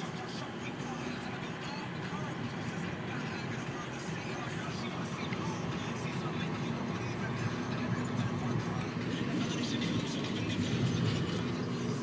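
Fabric rustles and rubs against a microphone.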